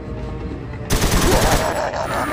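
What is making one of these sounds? A machine gun fires a rapid burst.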